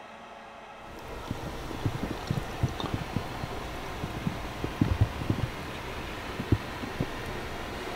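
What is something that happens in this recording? Wind blows outdoors with rough gusts.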